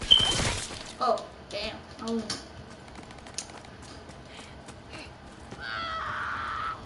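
A young woman talks animatedly into a close microphone.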